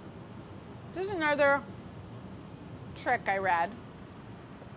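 A woman speaks calmly and clearly close by.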